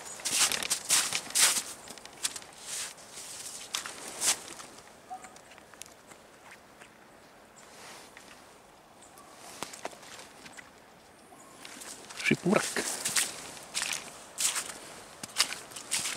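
Footsteps crunch and squelch on a wet, snowy path.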